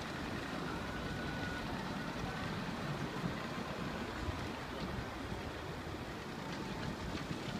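Traffic rumbles steadily along a city street.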